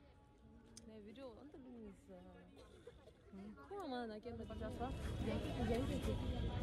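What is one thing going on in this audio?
Another young woman talks and laughs nearby.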